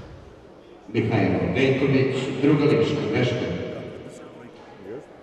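Spectators cheer and shout loudly in an echoing hall.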